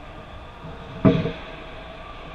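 A hockey goal frame knocks hard against the ice in a large echoing rink.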